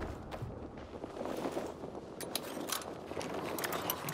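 A lock clicks as a pick turns inside it.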